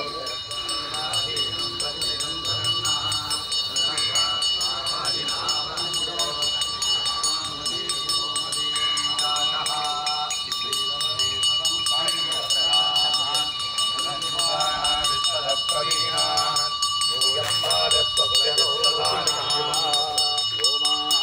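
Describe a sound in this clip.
A group of men chant outdoors.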